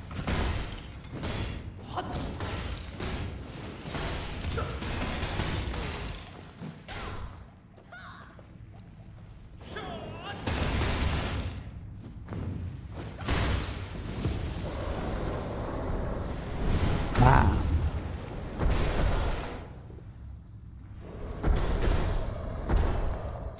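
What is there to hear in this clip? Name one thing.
Swords strike with sharp clangs and thuds in a fight.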